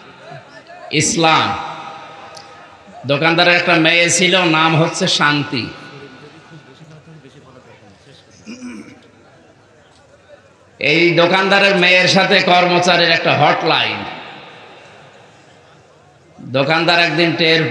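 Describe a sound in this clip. A man preaches forcefully into microphones, his voice echoing through a large hall.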